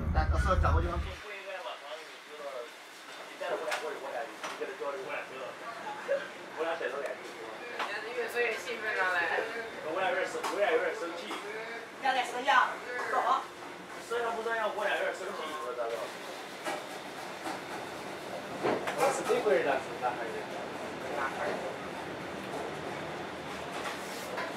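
A train rolls along with a steady low rumble.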